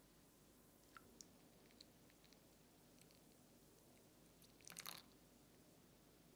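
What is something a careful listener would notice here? Coffee pours over ice in a glass.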